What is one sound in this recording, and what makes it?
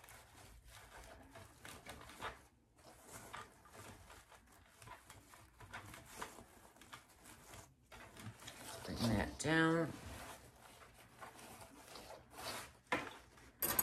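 Hands rustle and crinkle satin ribbon.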